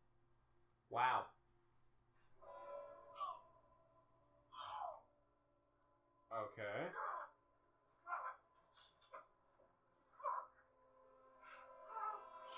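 A young man makes short vocal sounds close to a microphone.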